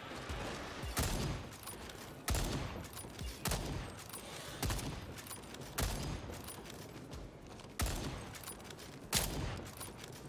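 A rifle fires single loud shots, one at a time, with pauses between.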